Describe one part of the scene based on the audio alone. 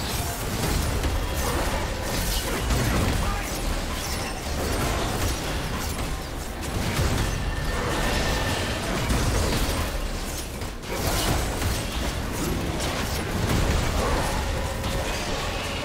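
Magic spell effects crackle and burst during a battle.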